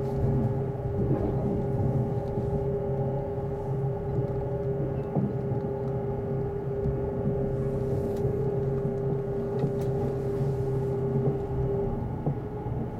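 A train's motor hums with a steady tone that stops as it slows into a station.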